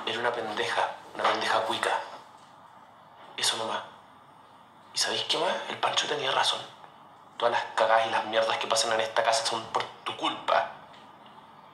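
A young man speaks tensely, close by.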